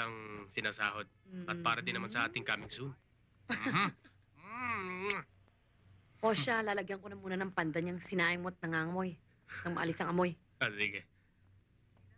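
A woman speaks with animation nearby.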